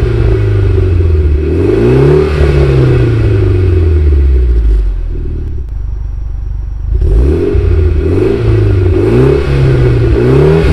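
A car engine revs hard and repeatedly close by, its exhaust roaring and crackling.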